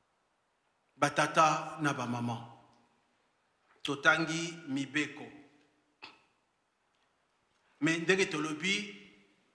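A middle-aged man speaks with emphasis into a microphone, in short bursts with pauses.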